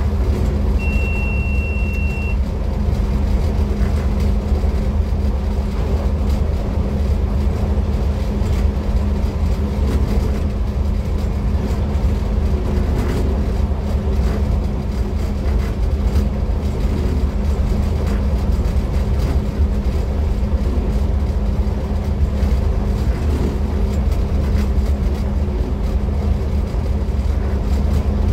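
A train engine rumbles steadily and low as the train rolls along.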